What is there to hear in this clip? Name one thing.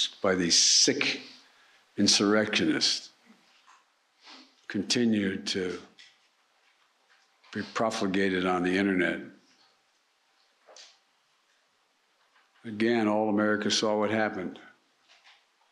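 An elderly man speaks slowly into a microphone in short bursts with long pauses.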